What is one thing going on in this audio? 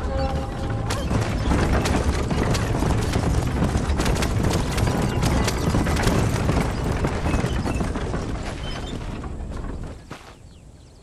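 A horse-drawn wagon rattles and rolls along a dirt track.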